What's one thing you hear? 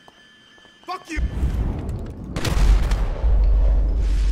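Gunshots ring out loudly.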